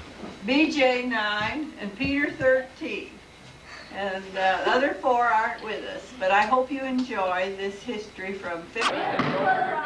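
An elderly woman talks cheerfully nearby.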